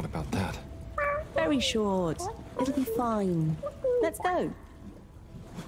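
A high, squeaky cartoonish voice speaks with animation.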